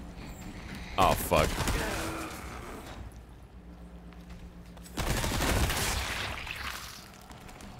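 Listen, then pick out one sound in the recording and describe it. A monster growls and roars.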